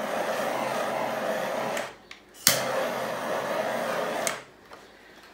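A small torch roars with a steady hissing flame in short bursts.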